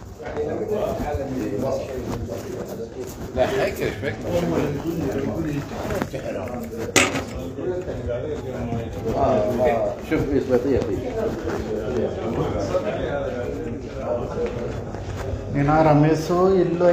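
Men talk casually nearby in a small room.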